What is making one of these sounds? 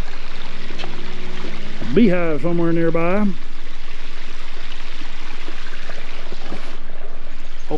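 Water trickles gently over rocks.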